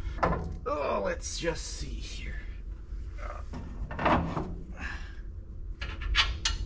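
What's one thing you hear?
Metal parts clink.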